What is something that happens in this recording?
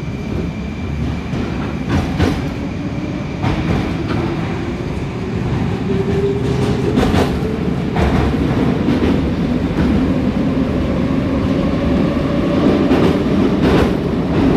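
The electric motors of a metro train whine and rise in pitch.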